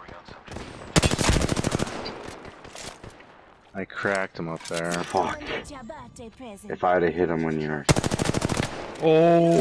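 An automatic gun fires rapid bursts of shots.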